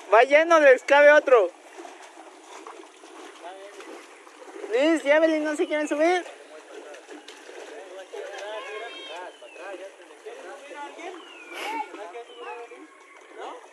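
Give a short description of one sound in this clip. A man scoops water out of a boat with splashes.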